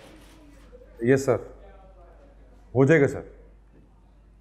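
A man speaks into a phone.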